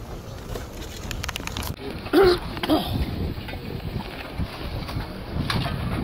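Shovels scrape and dig into earth outdoors.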